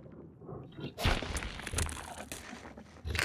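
A large creature growls and snorts close by.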